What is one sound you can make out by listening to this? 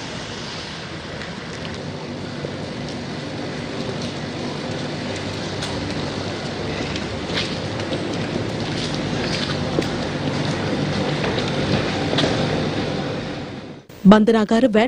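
Footsteps shuffle on pavement as a group walks.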